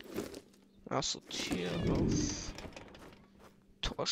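A wooden gate creaks open.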